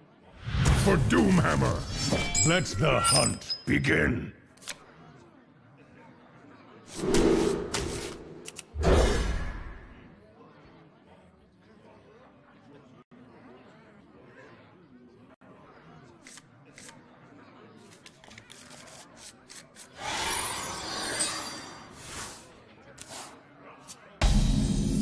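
Playful game sound effects swish and chime.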